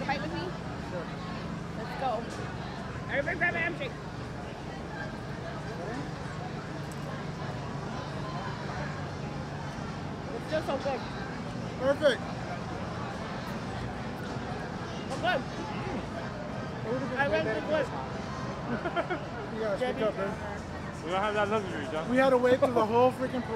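Young men and women talk and laugh nearby outdoors.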